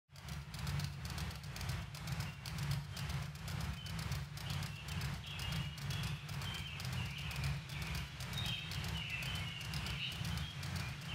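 A ceiling fan whirs steadily with a soft rhythmic pulse.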